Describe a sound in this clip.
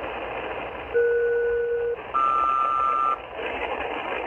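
A radio receiver sounds two steady high beeping tones through its loudspeaker.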